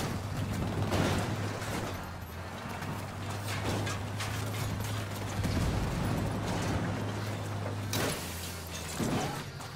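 A van crashes and scrapes against metal.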